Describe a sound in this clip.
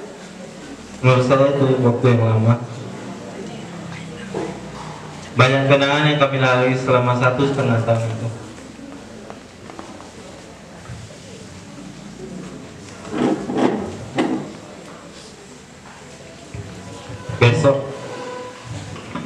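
A young man speaks calmly into a microphone over a loudspeaker, in short bursts.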